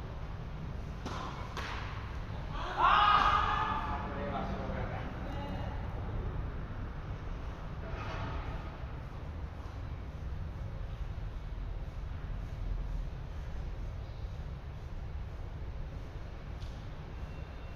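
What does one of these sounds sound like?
Tennis balls are struck with rackets in a large, echoing hall.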